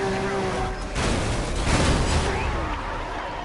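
A loud blast and crash burst out, then fade.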